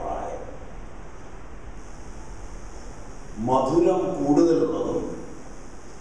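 A middle-aged man speaks through a microphone and loudspeaker in an echoing room.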